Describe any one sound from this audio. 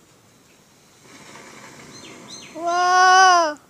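A firework hisses and roars as it bursts into flame.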